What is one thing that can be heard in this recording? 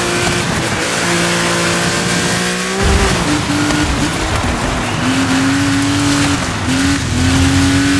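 A car engine revs and drops in pitch as gears shift.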